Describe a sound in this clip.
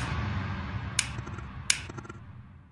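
A light switch clicks.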